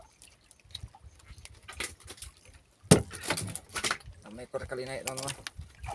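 A fish flaps and thumps against a wooden boat.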